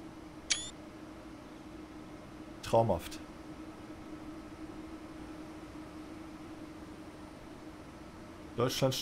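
An electric train hums steadily at rest.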